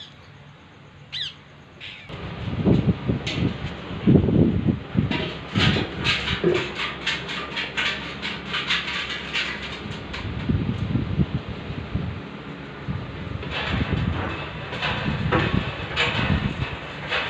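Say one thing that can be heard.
Birds chirp outdoors.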